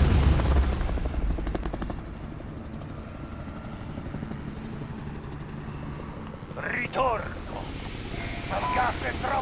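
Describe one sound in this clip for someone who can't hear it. Helicopters drone in the distance.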